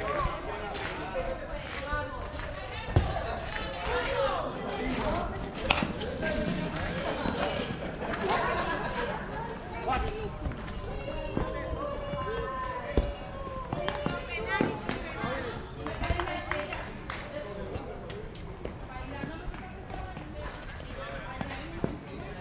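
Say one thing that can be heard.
Several men talk and call out outdoors.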